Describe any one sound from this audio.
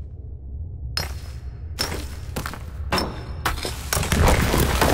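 A pick-axe strikes rock.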